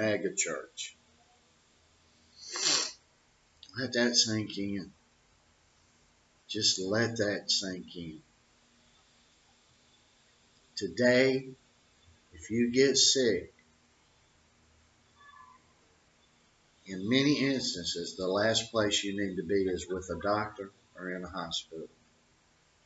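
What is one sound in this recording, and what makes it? An older man speaks calmly and close into a microphone, with pauses between phrases.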